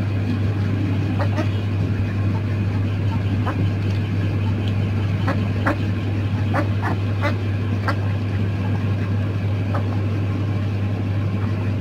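Ducks dabble and slurp through wet greens.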